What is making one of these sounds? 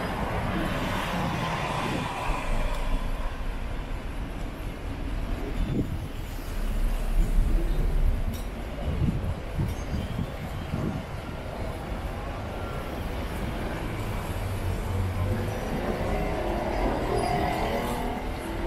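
Cars drive past on a street.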